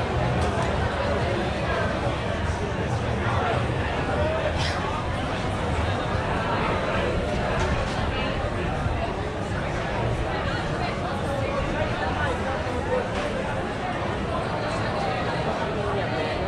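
A crowd of men and women chatters nearby, outdoors.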